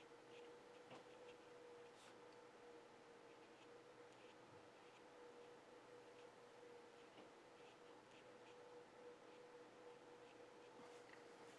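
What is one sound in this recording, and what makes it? A paintbrush taps and brushes softly on paper.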